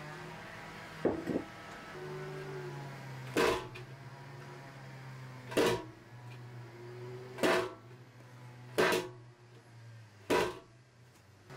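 A metal baking tray is dropped onto a table several times with sharp knocks.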